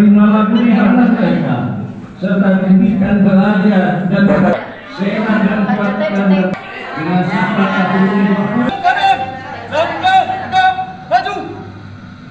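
Women call out greetings together with animation, close by.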